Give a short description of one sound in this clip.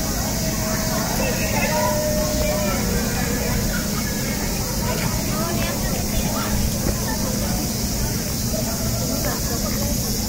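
A crowd of people chatters softly outdoors at a distance.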